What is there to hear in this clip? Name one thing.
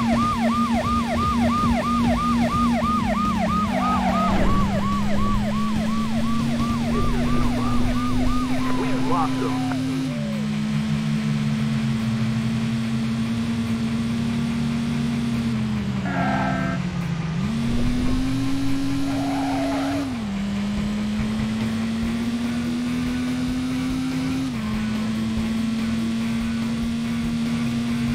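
A car engine drones and shifts gears as it speeds up.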